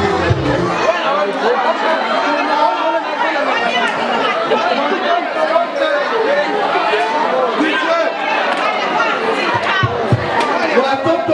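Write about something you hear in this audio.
A crowd of men and women chatter and call out in a large echoing hall.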